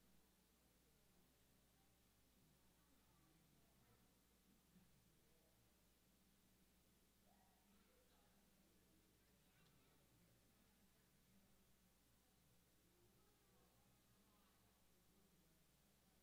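A man speaks into a microphone in a large room, heard faintly from a distance.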